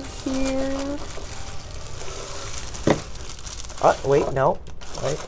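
Shredded paper rustles and crinkles as a hand digs through it.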